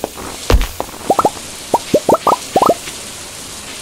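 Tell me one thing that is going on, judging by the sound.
Short rising pops sound as items are picked up.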